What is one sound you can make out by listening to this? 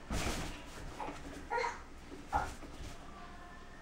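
A small child flops down onto a soft mattress with a thump.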